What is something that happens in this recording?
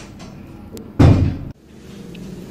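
A door swings shut with a thud.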